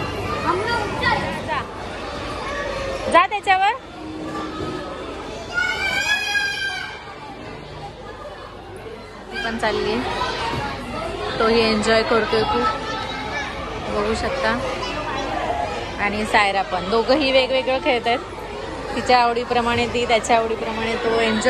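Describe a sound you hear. Young children shout and chatter nearby.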